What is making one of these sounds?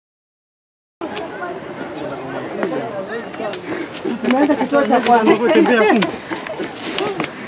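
A crowd of men and women talk and call out all around, outdoors.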